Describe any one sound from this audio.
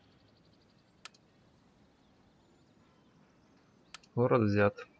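A soft interface click sounds twice.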